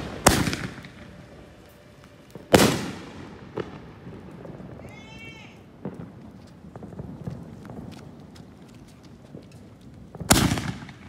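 Fireworks explode with loud booming bangs.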